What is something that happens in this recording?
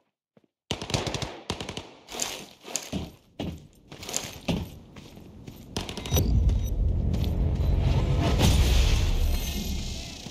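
Footsteps thud on metal floors in a game.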